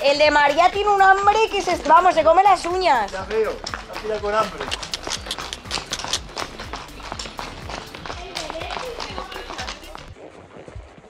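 Horse hooves clop on a paved road.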